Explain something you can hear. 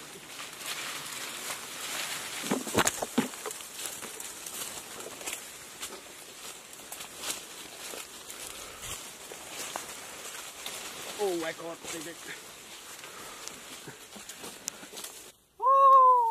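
Footsteps crunch on dry leaves.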